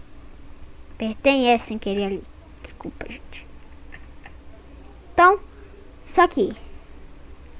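A young boy talks with animation, close to a microphone.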